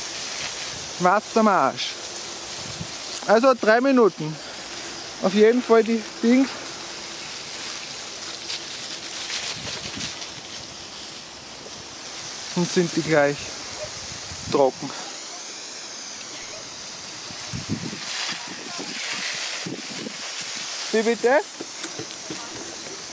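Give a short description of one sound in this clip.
Water sprays from a garden hose with a steady hiss and patters onto grass.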